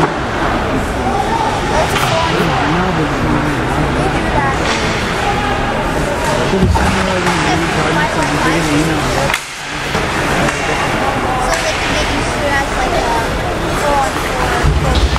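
A crowd of spectators nearby chatters steadily.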